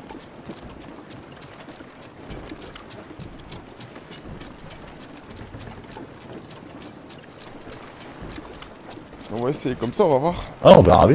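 Waves wash and roll against a ship's hull.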